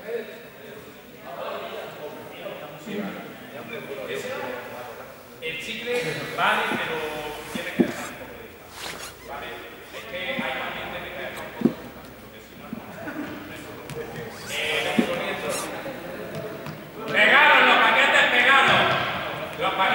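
Young people talk and call out across a large echoing hall.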